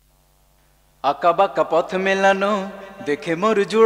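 A man sings a melody up close.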